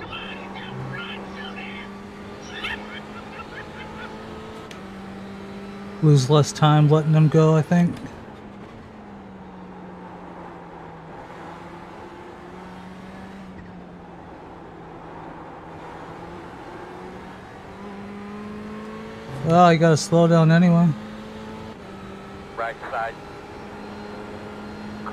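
A race car engine drones steadily, its pitch shifting with gear changes.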